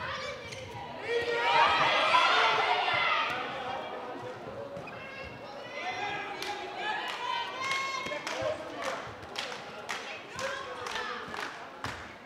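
Young women shout and call out to each other in a large echoing hall.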